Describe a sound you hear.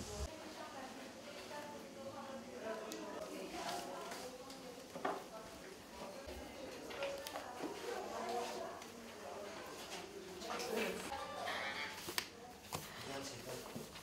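Pencils scratch on paper.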